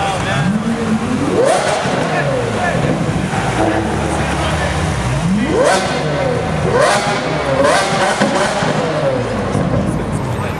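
A sports car engine revs loudly in sharp rising bursts.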